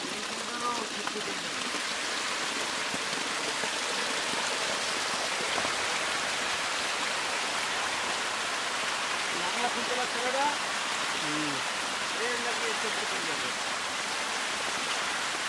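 Feed pellets patter onto the water.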